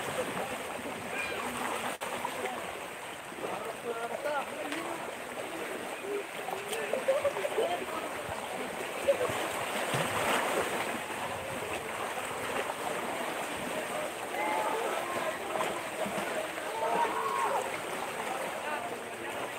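Young children call out and chatter playfully nearby.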